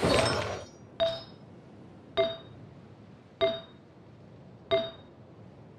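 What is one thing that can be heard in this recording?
Short bright menu chimes ring out one after another.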